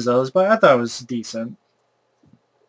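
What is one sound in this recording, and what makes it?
A young man speaks loudly and with animation, close to a microphone.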